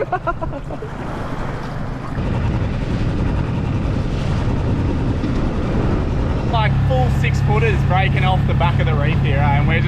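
Small waves lap and splash against the boat.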